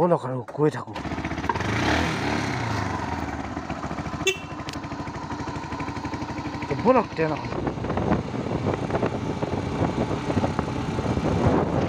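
A motorcycle engine runs steadily.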